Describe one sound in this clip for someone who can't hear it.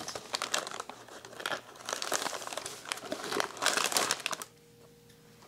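Foil wrapping crinkles and rustles as it is unwrapped.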